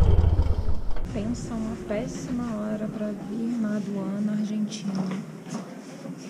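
A woman speaks calmly close up.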